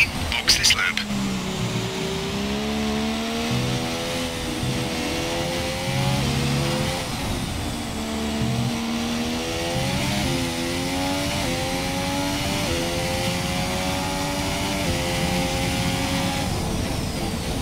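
A racing car engine screams, rising in pitch through the gears and dropping at each shift.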